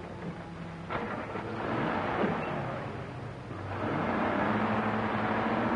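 A car engine starts and runs.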